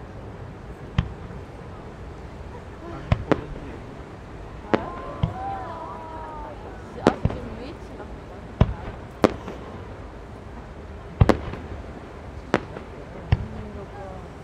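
Fireworks burst with sharp bangs and pops in the distance, outdoors.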